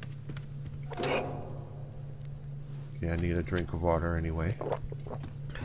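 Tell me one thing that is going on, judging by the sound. A fire crackles softly in a small stove.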